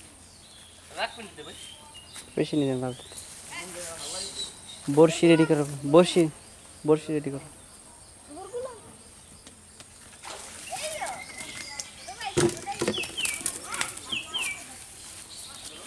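Young boys talk and call out to each other outdoors.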